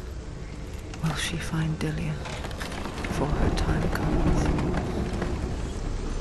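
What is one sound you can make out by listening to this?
Heavy wooden doors grind and creak open.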